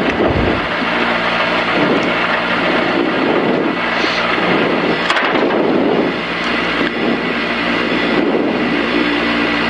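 Tyres rumble and hiss over the road surface.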